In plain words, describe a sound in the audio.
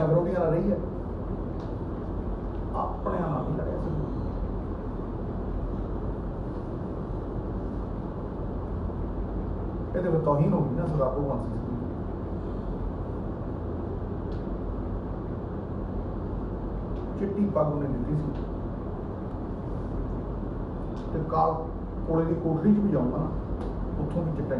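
A man speaks into microphones in short bursts with long pauses.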